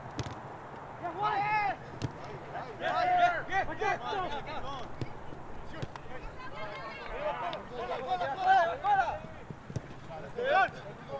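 Young men shout across an open field.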